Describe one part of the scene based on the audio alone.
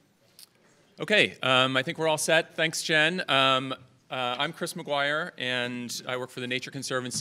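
A man speaks calmly through a microphone and loudspeakers in a large hall.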